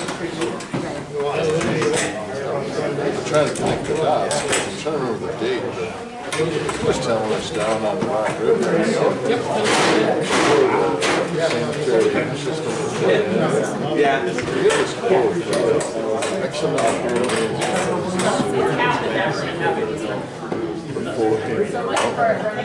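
Many adults chatter and talk over each other in an echoing room.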